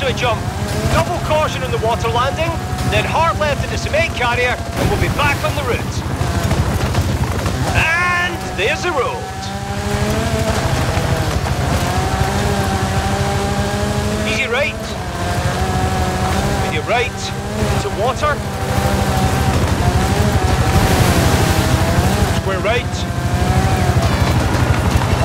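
A rally car engine roars and revs, shifting gears as it speeds over dirt.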